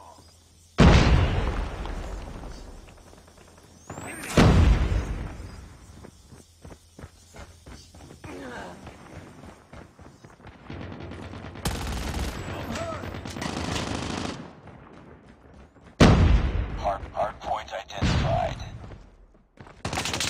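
Gunfire rings out in loud bursts.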